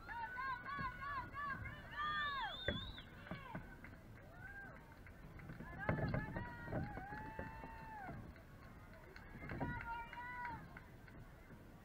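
Young girls chant and cheer loudly nearby, outdoors.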